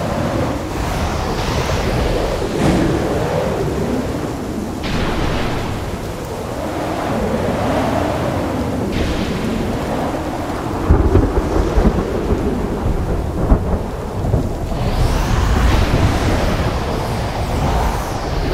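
Wind rushes past in loud, swelling whooshes.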